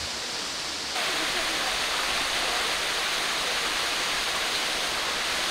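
A waterfall splashes steadily nearby.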